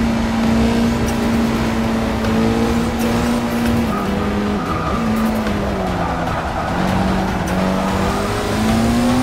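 A racing car engine roars steadily, dropping and rising in pitch as it shifts gears.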